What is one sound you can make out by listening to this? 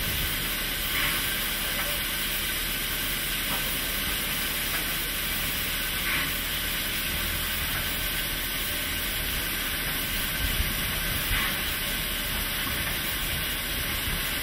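A steam locomotive hisses steadily at close range.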